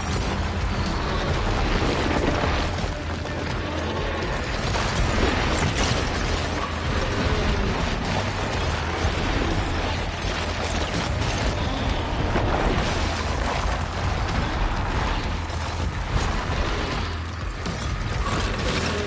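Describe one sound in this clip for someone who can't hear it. Dense game combat sounds crash and rumble with explosions.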